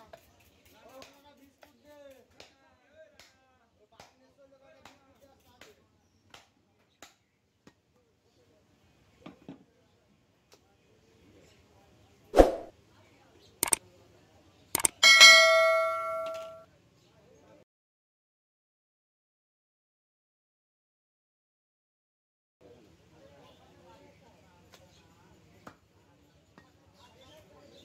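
A cleaver chops meat on a wooden block with sharp, repeated knocks.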